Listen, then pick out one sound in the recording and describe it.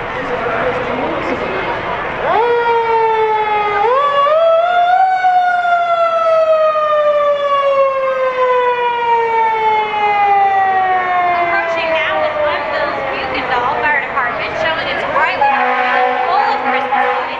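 A crowd chatters and cheers outdoors.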